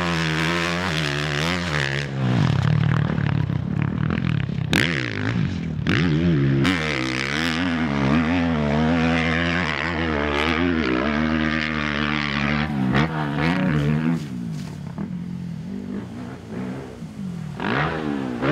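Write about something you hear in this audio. A dirt bike engine revs loudly, rising and falling in pitch.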